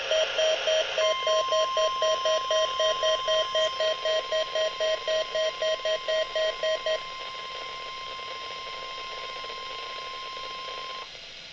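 A radio loudspeaker plays a steady, continuous tone.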